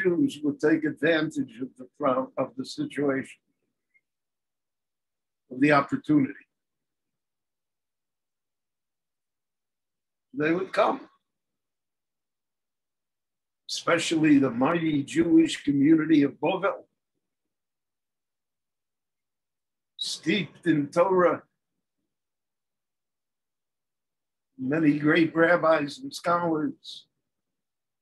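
An elderly man speaks calmly and close up, in short phrases with pauses.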